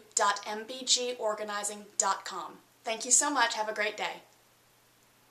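A woman speaks calmly and cheerfully close by.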